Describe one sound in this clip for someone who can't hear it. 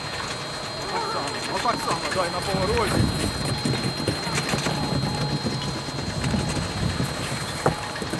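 A snowboard scrapes across packed snow.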